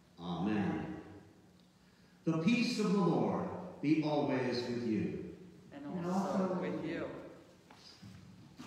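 A man chants in a large echoing hall.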